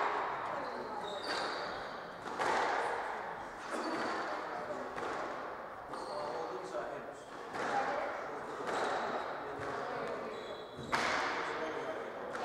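Shoes squeak on a wooden court floor.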